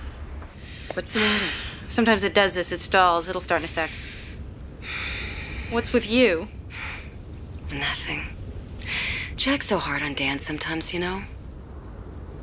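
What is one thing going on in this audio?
A second woman speaks with animation.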